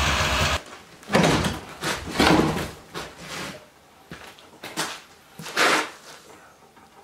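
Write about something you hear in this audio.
Wooden boards knock and clatter on a hard floor.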